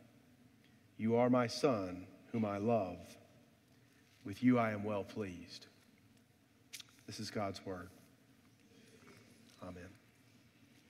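A man reads aloud slowly and calmly through a microphone in an echoing hall.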